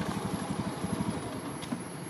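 A long-tailed macaque gives a short call.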